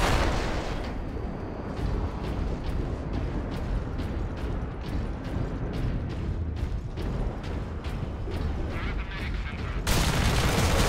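Heavy armoured footsteps clank steadily on a metal floor.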